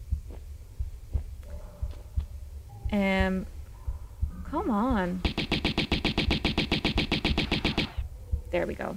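Pistols fire in quick bursts.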